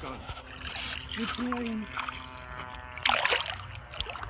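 A fish splashes away through shallow water.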